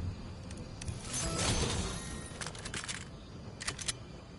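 A vending machine clicks several times.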